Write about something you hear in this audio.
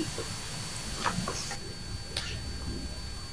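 Paper rustles in a man's hands.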